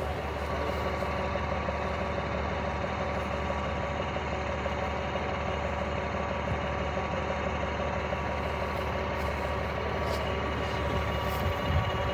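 Boots scuff and knock on a metal hull.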